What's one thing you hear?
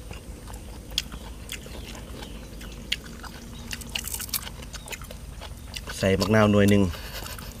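A man and a woman chew and smack their lips close by.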